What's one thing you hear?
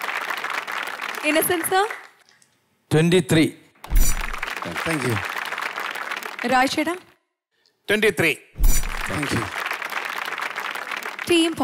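An audience claps loudly.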